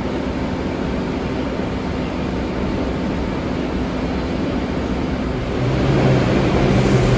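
A subway train rumbles and squeals as it pulls into an echoing station.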